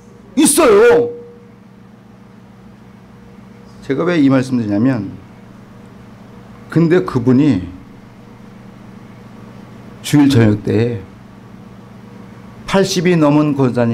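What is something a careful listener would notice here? A middle-aged man speaks into a microphone in short, emphatic phrases with pauses between them.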